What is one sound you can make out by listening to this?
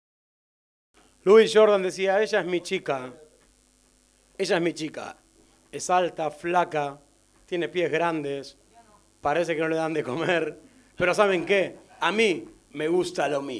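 A man sings into a microphone in short phrases.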